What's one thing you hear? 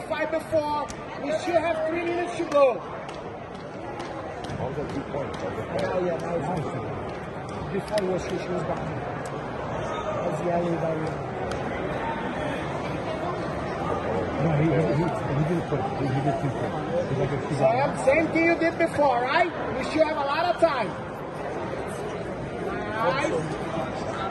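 Spectators shout loudly now and then.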